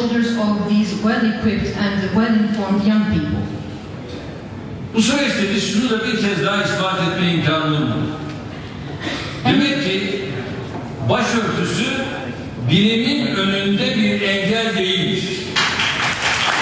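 A middle-aged man speaks forcefully into a microphone, heard through loudspeakers in a large hall.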